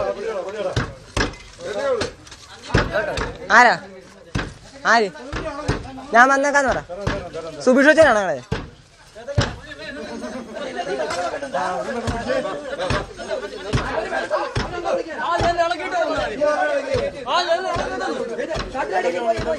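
Young men shout and talk excitedly nearby.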